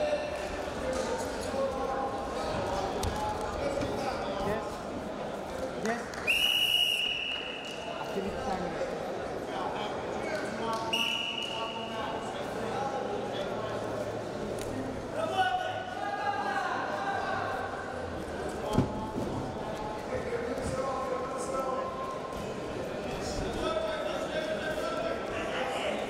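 Wrestlers' feet shuffle and thud on a mat.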